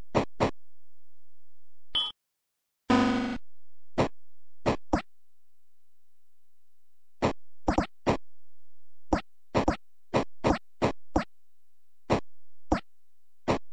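Short electronic zapping blasts fire again and again.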